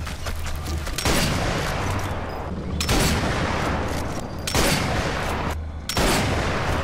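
Rifle shots crack loudly, each followed by a long echoing rumble.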